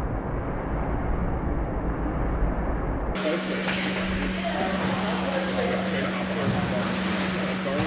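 A kayak paddle splashes in the water.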